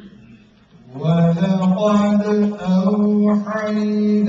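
A man chants loudly and melodically through a microphone.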